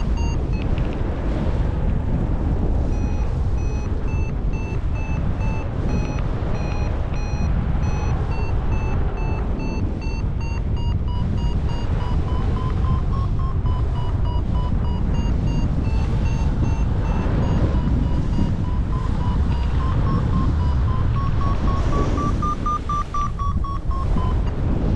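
Wind roars steadily across a microphone in open air.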